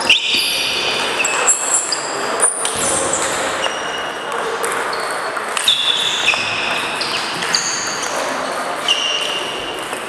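A table tennis ball clicks sharply back and forth off paddles and a table.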